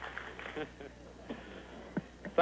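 An older man laughs.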